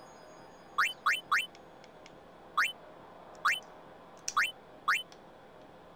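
Short electronic menu beeps sound one after another.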